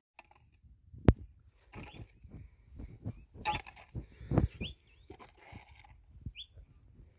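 A hoe digs and scrapes into soil.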